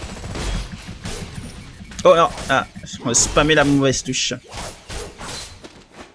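Energy blasts crackle and boom in a fight.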